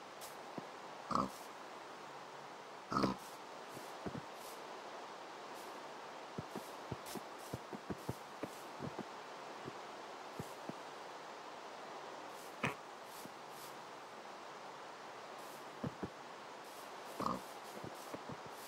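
Pigs grunt and oink close by.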